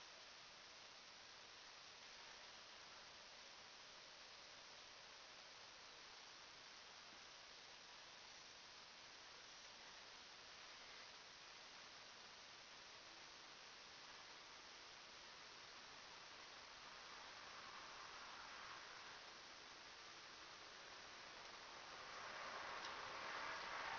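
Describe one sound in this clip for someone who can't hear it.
A marker squeaks across a whiteboard in short strokes.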